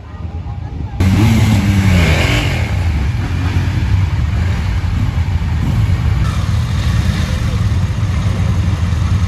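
Motorcycle engines idle with a deep, steady rumble close by.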